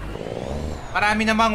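A man speaks casually into a microphone close by.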